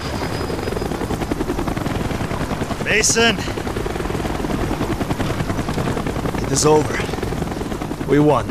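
Helicopter rotors thump and drone steadily nearby.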